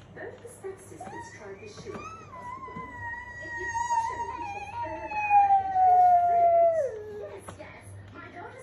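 A toy motorbike plays an electronic siren tune that glides slowly down, then stops.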